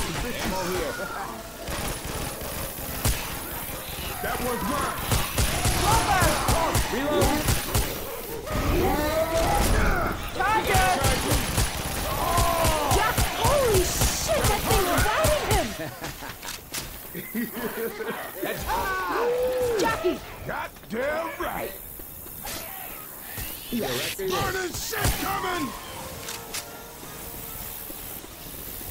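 A shotgun fires in rapid, loud bursts.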